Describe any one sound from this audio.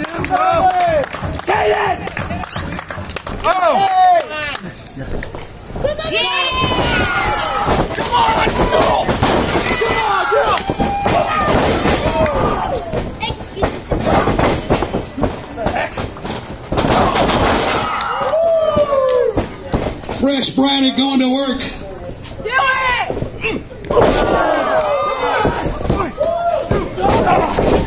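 Bodies thud heavily onto a wrestling ring mat.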